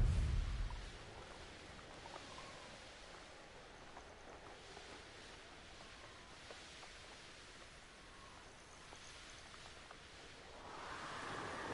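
A horse's hooves thud steadily on soft ground.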